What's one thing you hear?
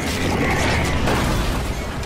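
An explosion bursts with a loud blast.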